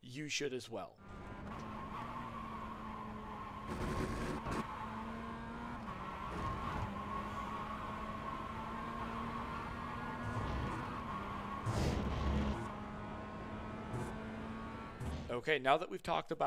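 A racing car engine hums steadily at speed.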